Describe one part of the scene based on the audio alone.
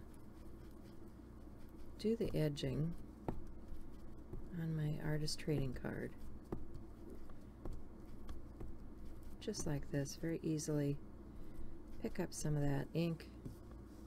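A foam ink tool dabs and rubs softly on paper.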